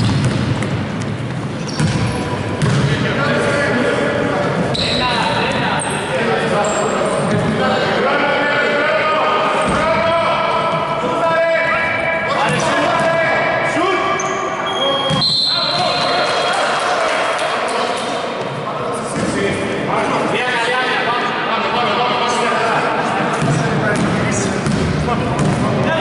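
Sneakers squeak sharply on a court in a large echoing hall.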